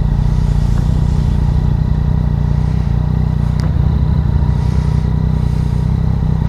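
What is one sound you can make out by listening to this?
A motorcycle engine idles with a steady low rumble close by.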